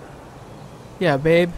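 A young man talks on a phone.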